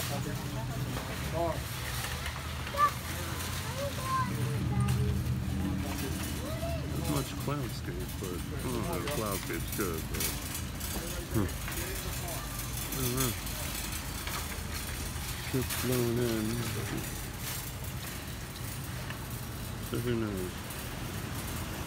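Several adults talk casually nearby outdoors.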